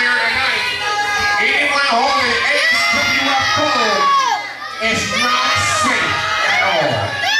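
A crowd in a large echoing hall cheers and shouts loudly.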